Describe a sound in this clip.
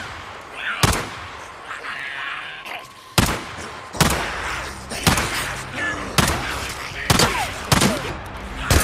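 A pistol fires sharp shots, one every second or so.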